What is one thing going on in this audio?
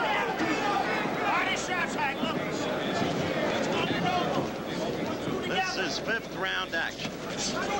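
A large crowd roars and cheers in a big hall.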